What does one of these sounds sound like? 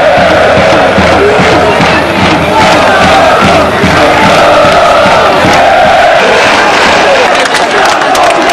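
Supporters in the crowd clap in rhythm.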